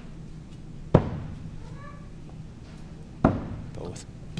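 Axes thud sharply into wooden targets.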